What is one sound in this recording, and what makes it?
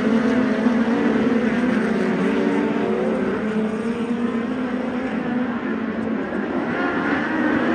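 Several racing car engines roar loudly and rev as they circle.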